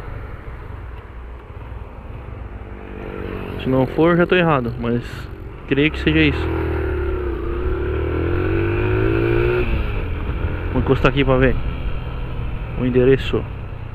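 A single-cylinder 250 cc motorcycle engine hums and accelerates under the rider.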